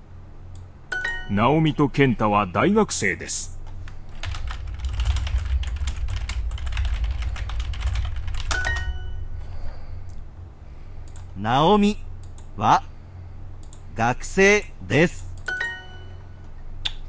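A short bright chime rings from a computer.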